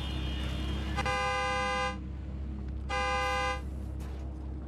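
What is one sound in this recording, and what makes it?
A car horn honks twice.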